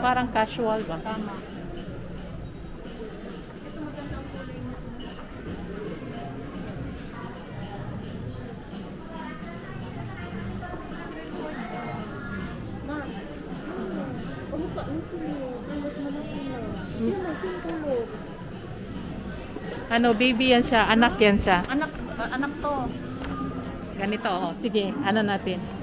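Shoppers murmur in the background of a busy indoor space.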